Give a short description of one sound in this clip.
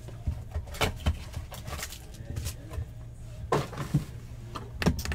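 Cardboard rustles and tears as a box is opened by hand.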